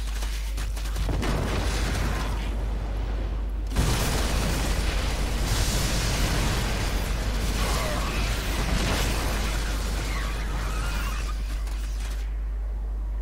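Laser blasts and explosions crackle and boom in a busy battle.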